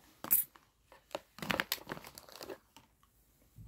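A plastic case clicks and rattles as it is handled.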